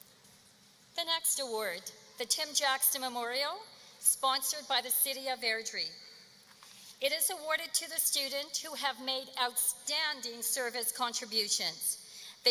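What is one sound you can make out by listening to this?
A young woman speaks calmly into a microphone over loudspeakers.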